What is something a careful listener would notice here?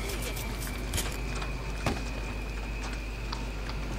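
Wires snap as a loudspeaker's cables are cut.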